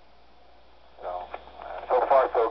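A man speaks through a handheld radio's small, crackly loudspeaker.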